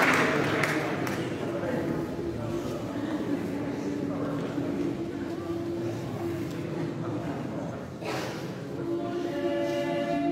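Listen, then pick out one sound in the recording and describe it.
A men's choir sings in harmony in a large echoing hall.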